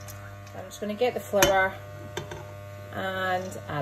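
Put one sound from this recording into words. Flour slides from a bowl into a pot with a soft thud.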